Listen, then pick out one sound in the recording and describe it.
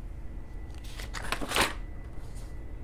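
A sheet of paper is flipped over with a rustle.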